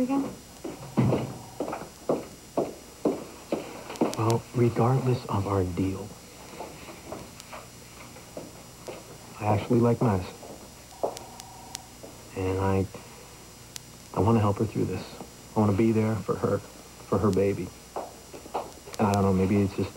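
A young man speaks calmly and earnestly, close by.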